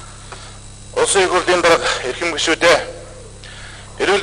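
Another middle-aged man speaks into a microphone.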